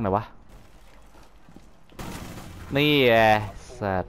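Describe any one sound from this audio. A rifle fires a short burst of shots.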